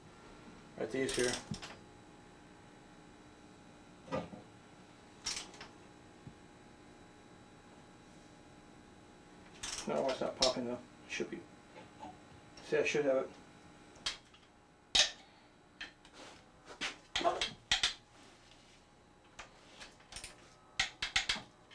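A ratchet wrench clicks as it turns a bolt on metal.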